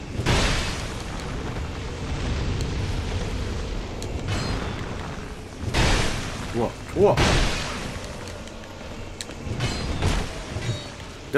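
A sword clangs and slashes in combat.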